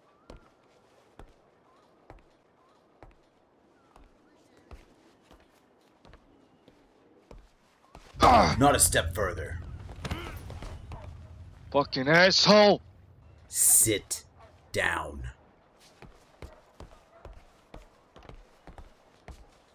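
Footsteps knock on a wooden deck.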